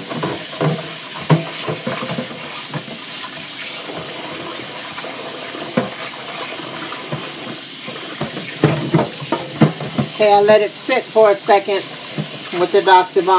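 Tap water runs steadily into a sink.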